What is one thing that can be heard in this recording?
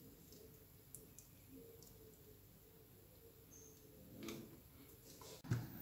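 Metal parts of a hand tool click and clink as they are handled.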